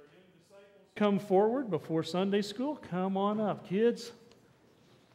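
A man sings loudly through a microphone in a large echoing hall.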